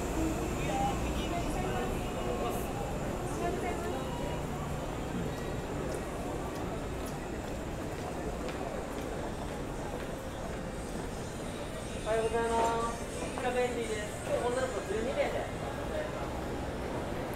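A busy street hums steadily outdoors.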